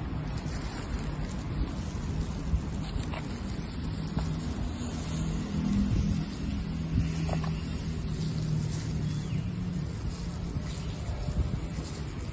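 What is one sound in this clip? Plastic crinkles and rustles.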